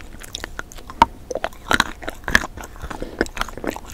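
Small crunchy bites snap close to a microphone.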